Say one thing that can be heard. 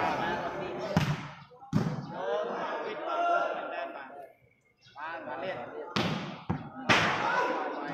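A ball is kicked with sharp thuds.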